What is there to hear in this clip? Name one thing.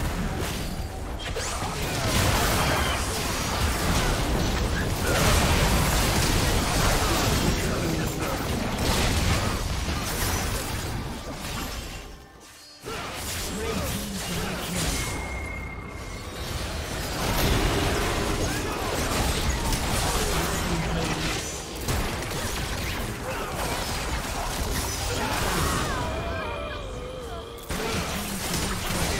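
Game spells and attacks crackle and boom in a busy fight.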